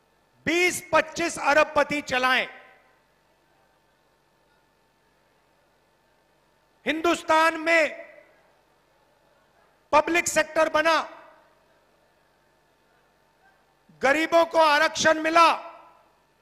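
A man speaks forcefully into a microphone over loudspeakers, in bursts with pauses.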